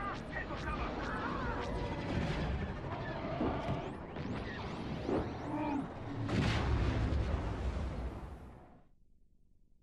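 Blaster fire and explosions crackle in a battle.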